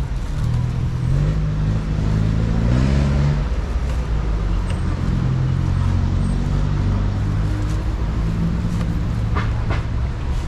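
Hands rustle and scrape against a coarse fibre mat.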